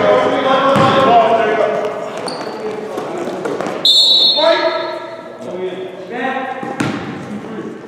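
Young men shout and call out to each other in an echoing gym.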